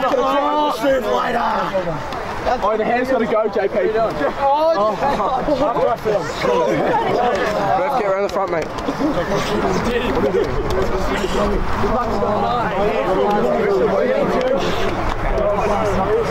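A crowd of young men sing and chant loudly together, close by.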